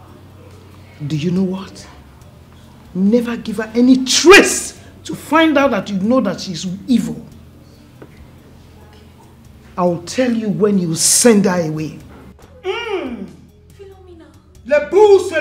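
A middle-aged woman speaks with animation nearby.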